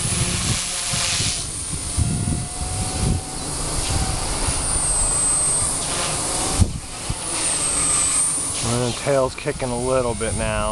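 A model helicopter's motor whines high overhead.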